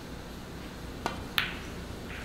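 A snooker cue strikes the cue ball with a sharp click.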